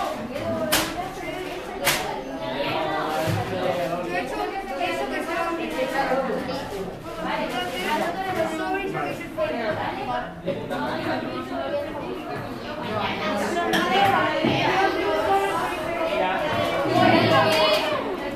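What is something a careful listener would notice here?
Several teenagers talk and chatter at once in a room.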